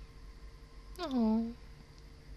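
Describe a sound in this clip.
A young woman hums a short rising note close to a microphone.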